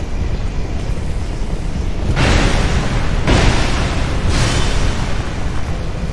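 Lightning crackles and blasts loudly.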